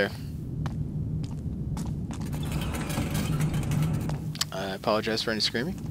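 A heavy wooden door is pushed open.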